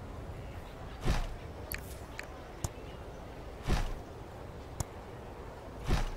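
A soft whooshing thud sounds as a building is placed.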